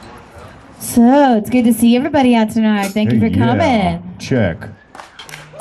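A young woman talks through a microphone and loudspeakers.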